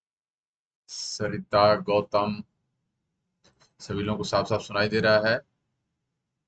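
A young man speaks with animation, close to a microphone.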